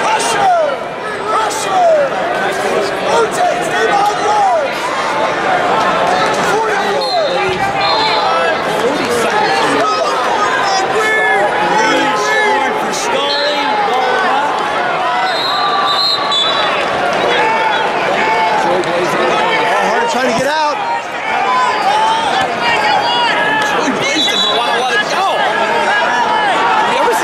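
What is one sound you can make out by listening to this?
A large crowd chatters and shouts in a large echoing hall.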